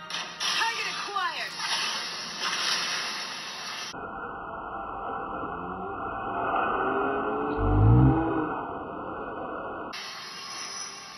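Spell effects whoosh and explode in a fast-paced game.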